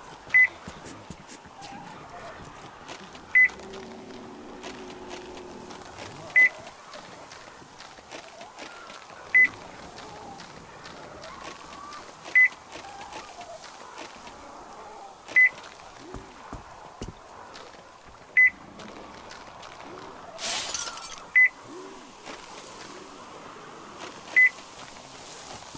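Footsteps crunch on gravel and snow.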